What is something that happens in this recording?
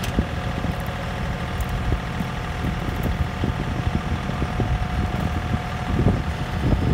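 A tractor engine idles steadily close by.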